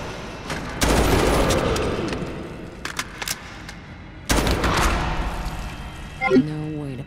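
A rifle fires loud bursts of gunshots.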